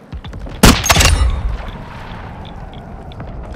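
A single loud rifle shot cracks and echoes away.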